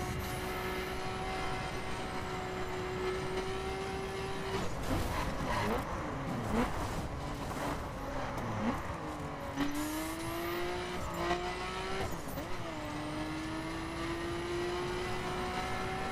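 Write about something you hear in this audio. A car engine roars at high revs, dropping and rising in pitch as the car slows and speeds up.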